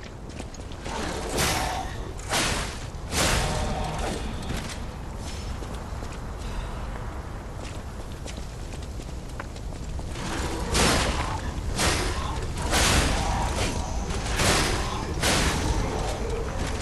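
Blades swing and whoosh through the air.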